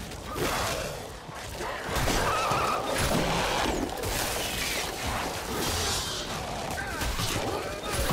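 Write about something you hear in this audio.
A monster snarls and growls close by.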